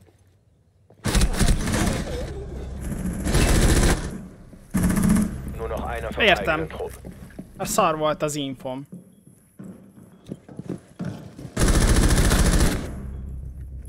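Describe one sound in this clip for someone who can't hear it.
Gunshots ring out in loud rapid bursts.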